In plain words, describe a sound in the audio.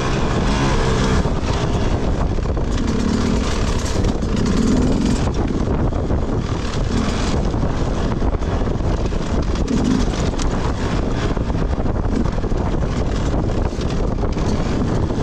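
Tyres crunch over rough grass and rocks.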